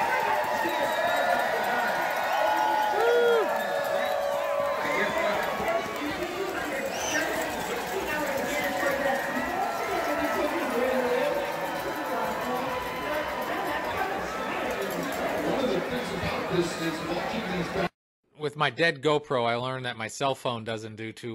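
A large crowd cheers and chatters outdoors.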